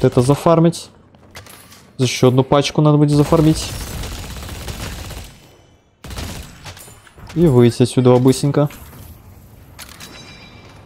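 Gunfire from a video game cracks in short bursts.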